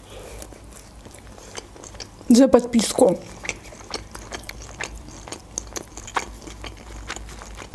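A young woman chews food with wet, sticky mouth sounds close to a microphone.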